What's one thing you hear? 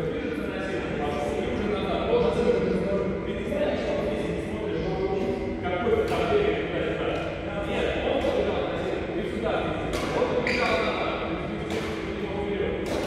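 A man talks calmly nearby in a large echoing hall.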